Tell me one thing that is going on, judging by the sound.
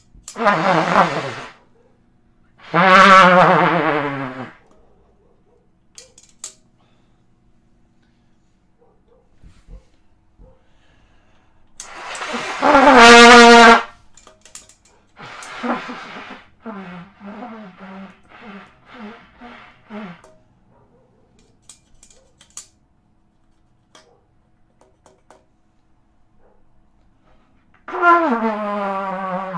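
A trumpet plays loud, short phrases with pauses between them, close by.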